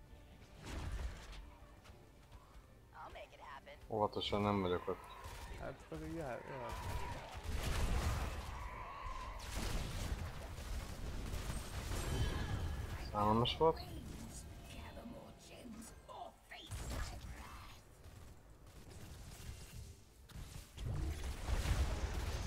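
Game combat effects crackle and blast in quick bursts.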